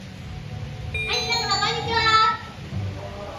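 Children in an audience shriek in surprise.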